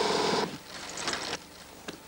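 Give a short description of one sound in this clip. A bicycle wheel scrapes and rattles across a wet canvas.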